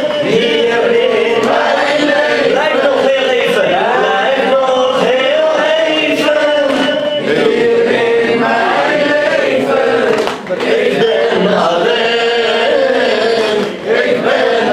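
A young man recites in a sustained, chanting voice through a microphone.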